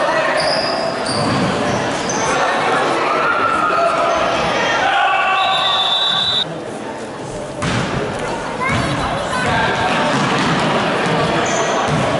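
A crowd of spectators talks and cheers, echoing in a large hall.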